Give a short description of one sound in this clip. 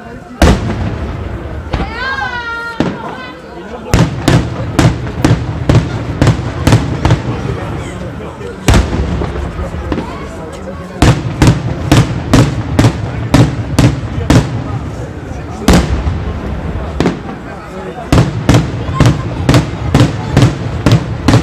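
Firecrackers burst overhead with loud, sharp bangs in rapid bursts.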